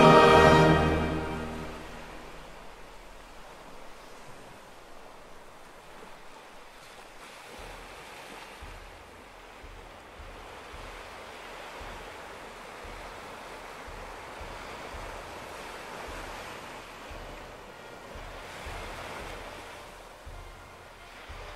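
Small waves wash gently onto a sandy shore and draw back.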